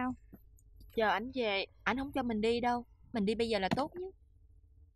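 A young woman answers calmly.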